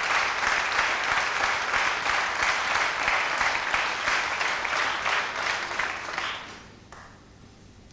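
An audience applauds loudly in a large hall, then the applause fades away.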